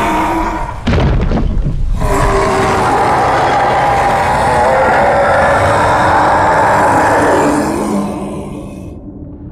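A large beast roars loudly and long.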